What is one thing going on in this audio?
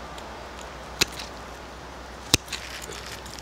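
Metal tweezers click sharply against a small branch.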